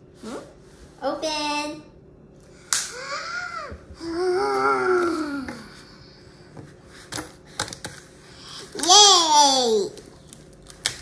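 A young girl squeals and exclaims excitedly close by.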